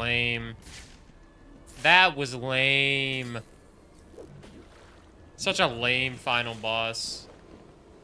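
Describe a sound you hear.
A young man speaks with animation, close to a microphone, drawing out his words.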